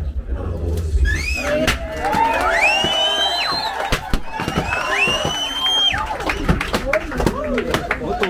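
A crowd of women ululate and cheer loudly.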